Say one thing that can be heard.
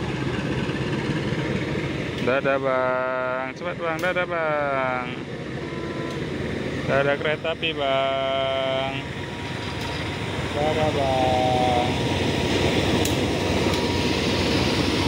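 A diesel-electric locomotive rumbles closer and passes nearby.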